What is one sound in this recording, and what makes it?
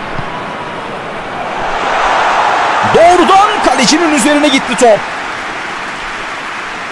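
A large stadium crowd roars and swells in excitement.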